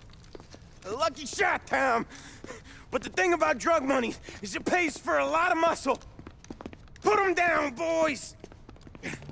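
A man speaks mockingly in a raised voice.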